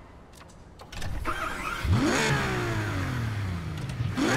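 A sports car engine roars and revs up loudly.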